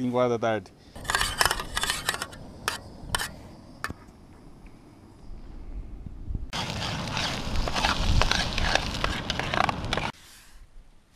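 A metal spoon scrapes against a pan.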